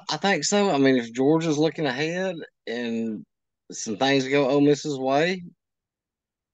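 A man talks over an online call.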